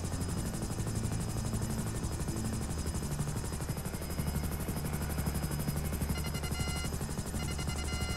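Helicopter rotor blades chop steadily overhead.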